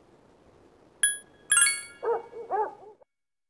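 A game menu chimes as a choice is made.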